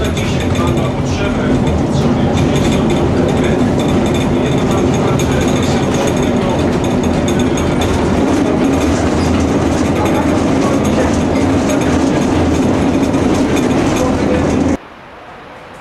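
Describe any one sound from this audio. A tram rumbles and rattles loudly along its rails.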